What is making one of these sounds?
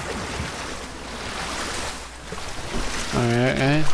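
Water splashes as an animal wades through shallows.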